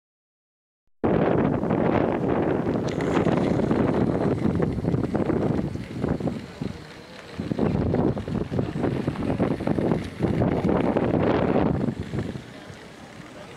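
A toy train rattles along a plastic track.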